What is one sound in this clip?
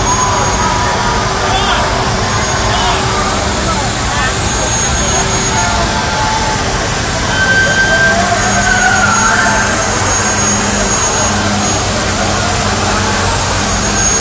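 Water sprays hard onto wet pavement with a hiss.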